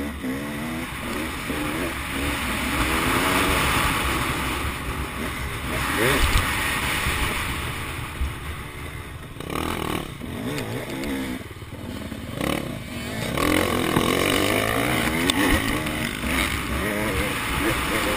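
A dirt bike engine revs loudly up close, rising and falling as it shifts gears.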